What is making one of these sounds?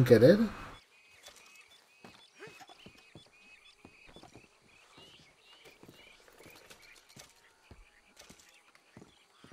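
Items clatter and rustle as a wagon is searched.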